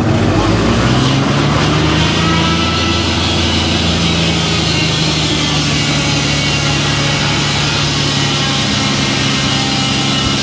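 A sawmill engine drones loudly and steadily.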